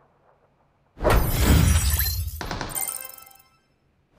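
A short triumphant fanfare plays.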